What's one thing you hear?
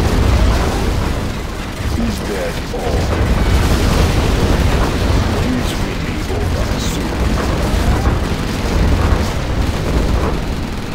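Explosions boom and rumble in a video game battle.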